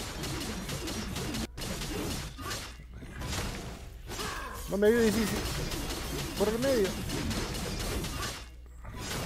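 Fighting sound effects clash and whoosh.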